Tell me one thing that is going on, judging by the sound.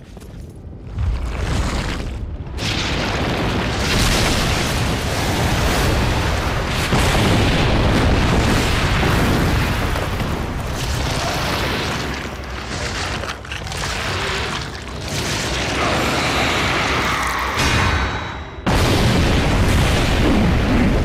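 A huge monster thrashes with deep rumbling crashes.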